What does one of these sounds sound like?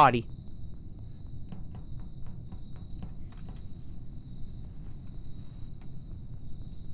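Footsteps tap softly and quickly on a metal floor.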